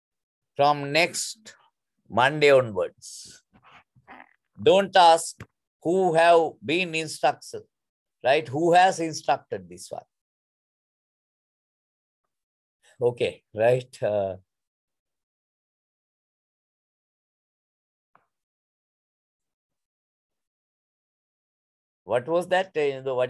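A man speaks calmly into a microphone, heard through an online call, pausing now and then.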